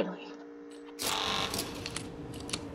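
A metal shutter rattles shut.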